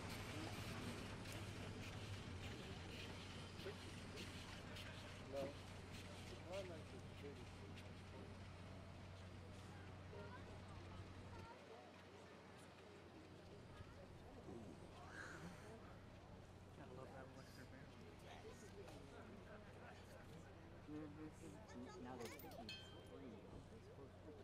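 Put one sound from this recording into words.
A steam locomotive's wheels clank and rattle on the rails.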